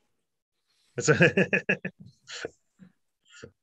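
Young men and women laugh over an online call.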